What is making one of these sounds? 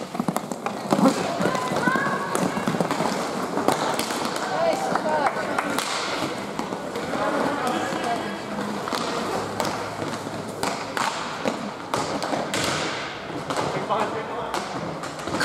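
Young players shout in a large echoing hall.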